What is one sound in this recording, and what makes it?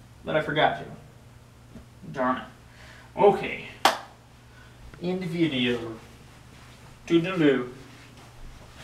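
A young man speaks in short bursts close by.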